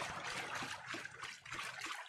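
Water splashes underfoot in a shallow stream.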